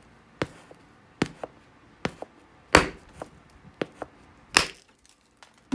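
A hand scrapes a sharp stone against a hide in short strokes.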